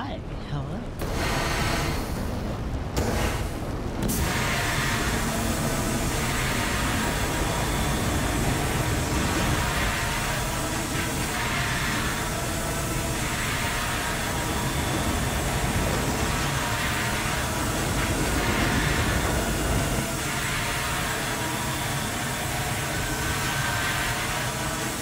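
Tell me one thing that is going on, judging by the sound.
A fire extinguisher sprays with a steady, loud hiss.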